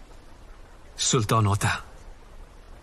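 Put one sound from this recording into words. A man speaks briefly in a loud, firm voice close by.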